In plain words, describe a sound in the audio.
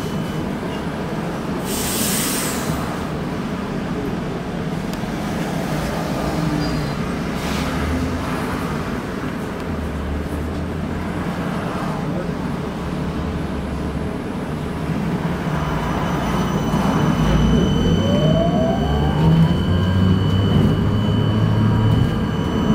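A car engine hums steadily from inside the vehicle.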